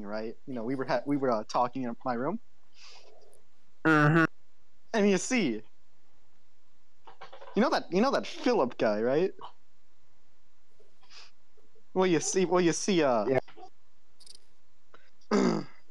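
A young man talks casually into a nearby microphone, in short bursts with pauses.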